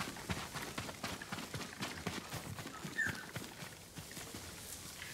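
Footsteps run quickly along a dirt path.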